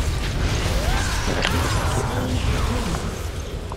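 Video game spell effects crash and burst during a fight.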